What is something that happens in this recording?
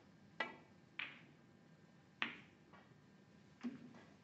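Snooker balls click together on the table.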